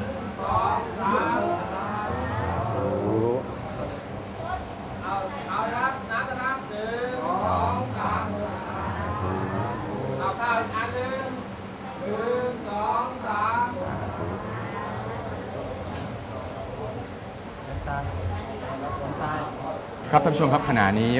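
An elderly man speaks calmly in a low voice.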